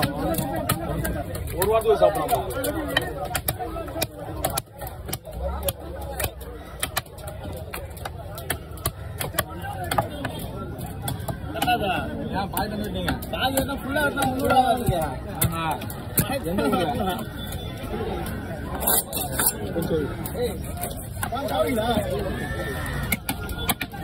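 A knife scrapes scales off a fish with quick rasping strokes.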